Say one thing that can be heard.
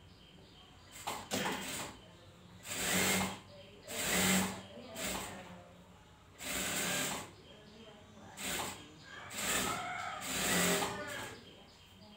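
A sewing machine runs in short bursts.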